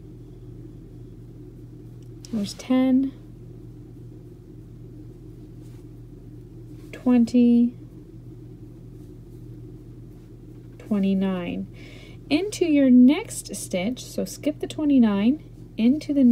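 Yarn rustles softly as a crochet hook pulls it through stitches.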